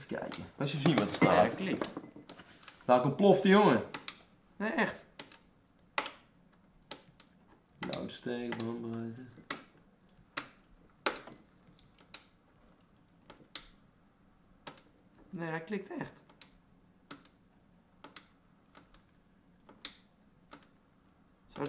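Small tools click and tap on a metal computer case.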